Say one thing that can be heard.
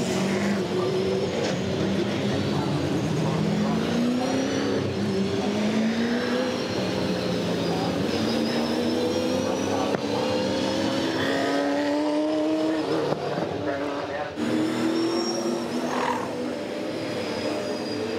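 Racing car engines roar loudly, rising in pitch as they rev up again and again.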